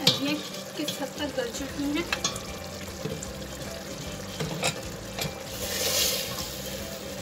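A stew bubbles and simmers in a pot.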